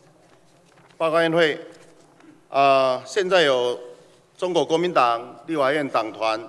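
A middle-aged man reads out loudly through a microphone in an echoing hall.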